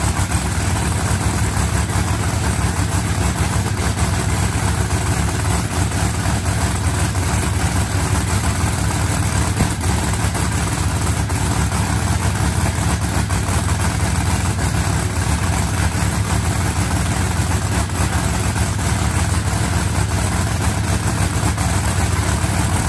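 A race car engine idles loudly with a rough, steady rumble.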